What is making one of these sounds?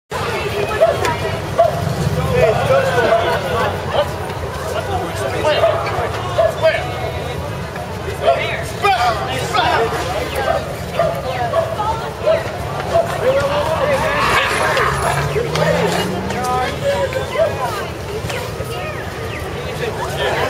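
A crowd of men and women chatters close by outdoors.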